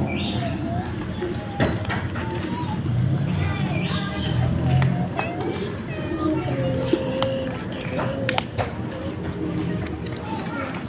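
Two kittens chew and tear at a fried fish.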